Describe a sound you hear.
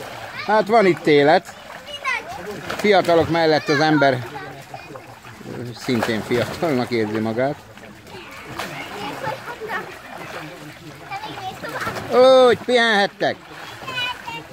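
Water splashes in a small pool.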